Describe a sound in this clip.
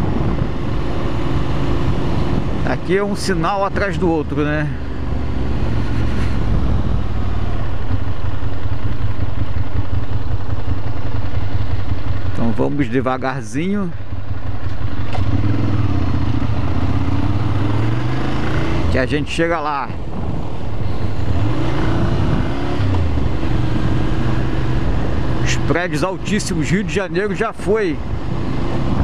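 A motorcycle engine hums and revs as it rides along.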